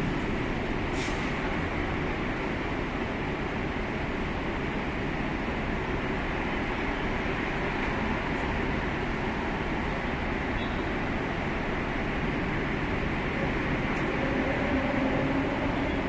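Car engines idle and rumble in slow traffic close by.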